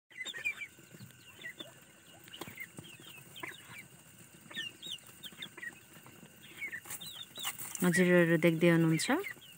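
Young chickens peep and chirp close by.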